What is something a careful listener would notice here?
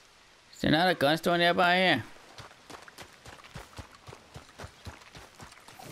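Boots thud on dirt as a man runs.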